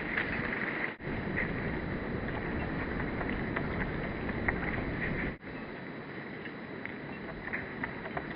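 A dog's paws patter quickly across wood chips.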